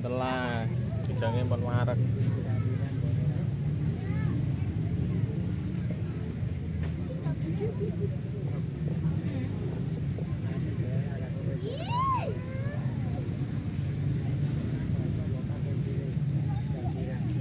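Women chat quietly in the background.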